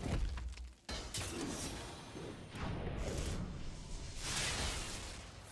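Game sound effects whoosh and crackle.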